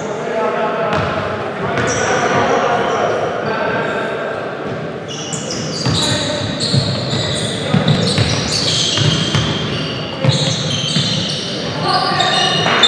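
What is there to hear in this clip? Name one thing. Young men shout to each other across the court.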